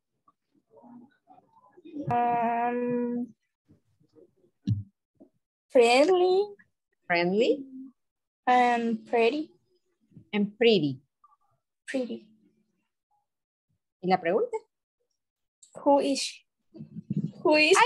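A woman speaks clearly through an online call, reading out short phrases.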